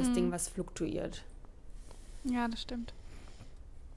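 A young woman speaks briefly with animation over an online call.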